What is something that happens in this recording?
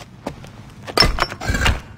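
A heavy stone door grinds and thuds.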